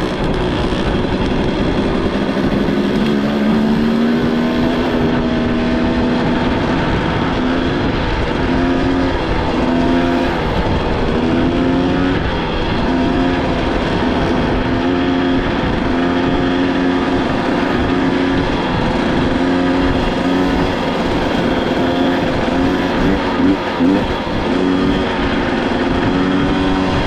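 Wind buffets loudly, as if rushing past a moving rider outdoors.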